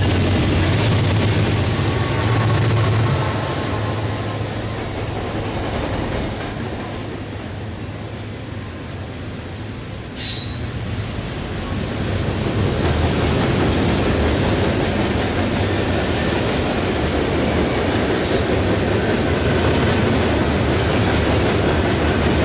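Freight cars clatter and rumble along the rails.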